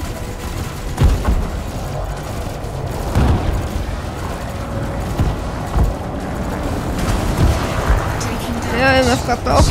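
Laser cannons fire in short bursts.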